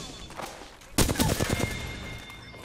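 Gunfire bursts in rapid shots.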